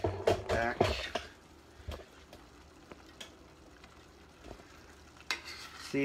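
A spoon stirs and clinks against a metal pot.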